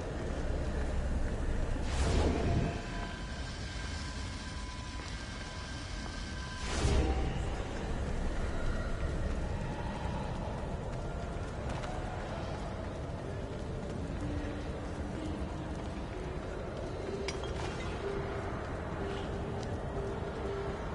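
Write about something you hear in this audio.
Footsteps shuffle over stone in an echoing cave.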